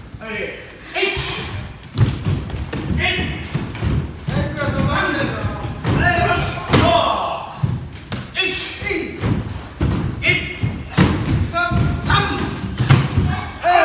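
Bare feet thump and slide on a wooden floor.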